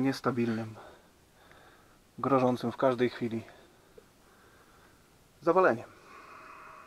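A man speaks in short bursts nearby.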